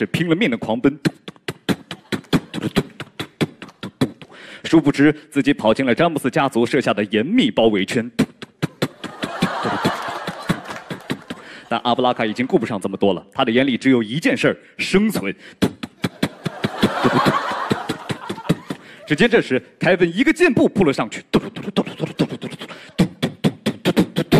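A young man beatboxes into a microphone with fast, punchy beats.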